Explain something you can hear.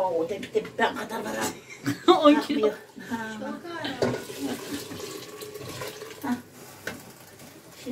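A metal kettle lid clinks against a pot.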